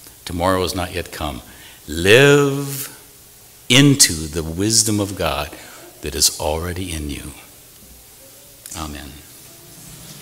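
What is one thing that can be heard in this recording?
An elderly man speaks calmly into a microphone in a large echoing room.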